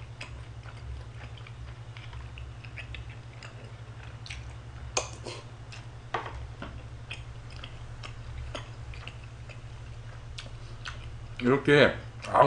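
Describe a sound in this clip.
A young man eats noisily, chewing and slurping food.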